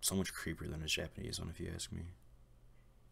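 A man speaks calmly and quietly, close up.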